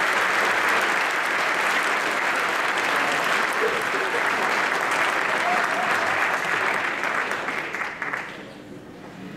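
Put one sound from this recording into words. An audience applauds loudly in a large hall, then the clapping dies away.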